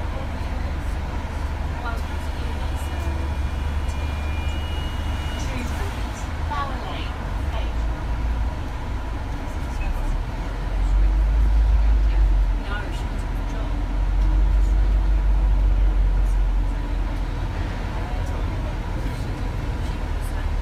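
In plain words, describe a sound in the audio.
City traffic drones along the street.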